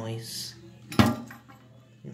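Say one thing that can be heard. A metal rod taps against a plastic part.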